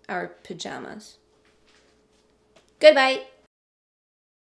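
A young woman speaks close to a microphone, with expression.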